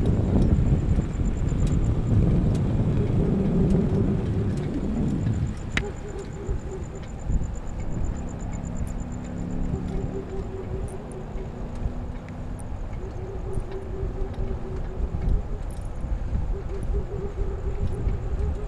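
A motorized bicycle engine hums steadily.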